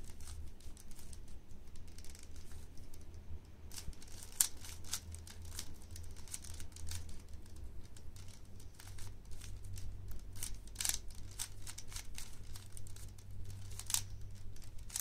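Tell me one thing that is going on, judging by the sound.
A plastic puzzle cube clicks and clacks as its layers are quickly twisted.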